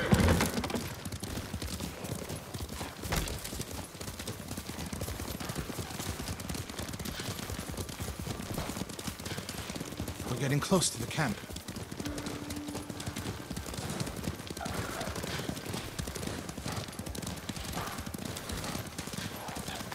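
Horses gallop with hooves thudding on a dirt path.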